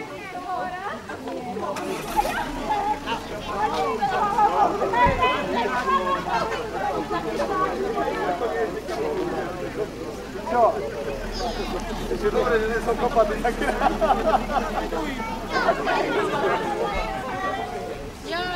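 A group of adult men and women chat and laugh nearby, outdoors.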